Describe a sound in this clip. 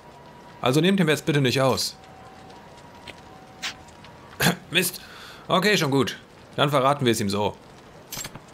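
A middle-aged man speaks gruffly, close by.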